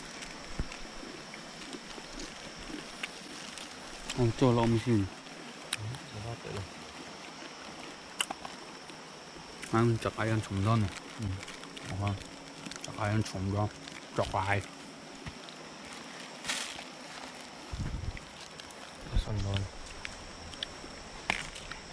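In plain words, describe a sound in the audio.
A small wood fire crackles and pops.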